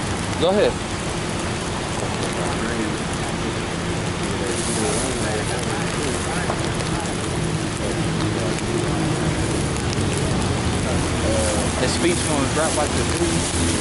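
A man speaks into a microphone, heard nearby.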